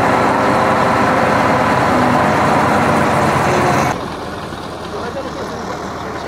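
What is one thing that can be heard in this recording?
A group of men talks quietly outdoors.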